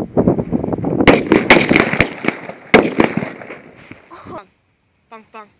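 Firework sparks crackle and pop rapidly.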